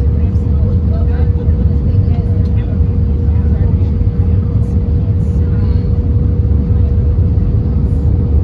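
Aircraft wheels rumble over the runway as the plane rolls.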